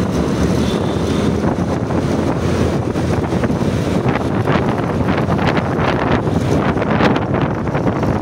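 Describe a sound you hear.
A motorbike engine hums steadily up close.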